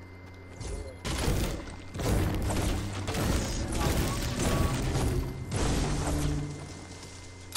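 A pickaxe strikes wood over and over with hard thuds.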